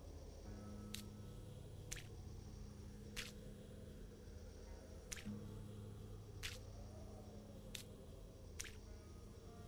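A hammer taps sharply on wood a few times.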